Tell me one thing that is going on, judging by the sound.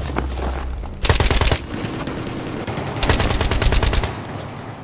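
Rapid gunfire bursts out in short volleys.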